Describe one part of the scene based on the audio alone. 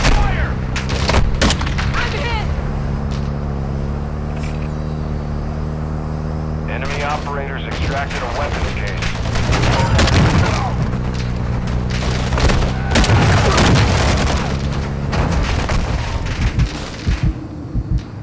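A vehicle engine hums steadily and then cuts out.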